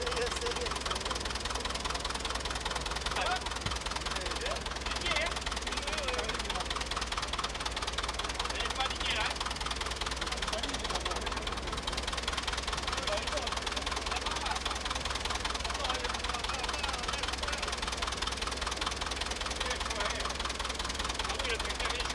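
A tractor engine idles with a steady, rapid chugging.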